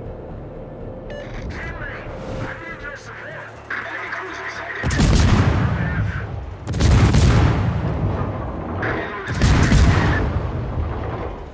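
Small guns rattle in rapid bursts.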